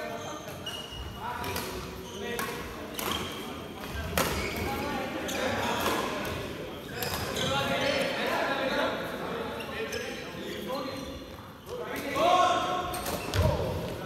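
Men talk and call out across the courts.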